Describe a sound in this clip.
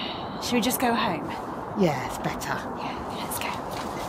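Two young women laugh close by.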